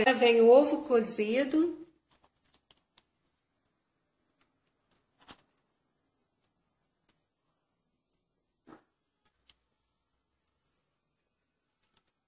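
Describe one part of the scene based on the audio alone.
Egg slices are set down softly on food in a metal tray.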